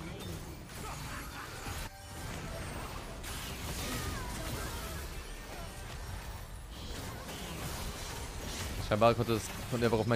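Game effects whoosh and crackle during a fight.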